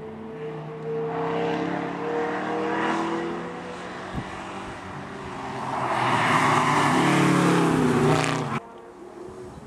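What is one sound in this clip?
A muscle car engine rumbles and revs hard as the car races by.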